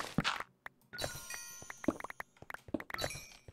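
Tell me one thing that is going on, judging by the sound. Blocks crumble and break with crunching sounds.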